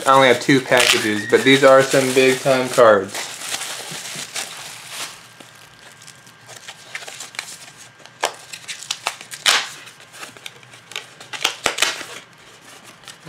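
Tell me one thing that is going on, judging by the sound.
Bubble wrap crinkles and rustles up close.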